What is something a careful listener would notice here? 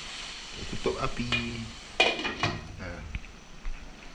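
A glass lid clatters onto a pot.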